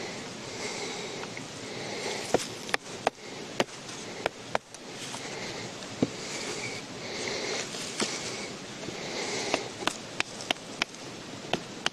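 A knife scrapes and shaves wood in short strokes.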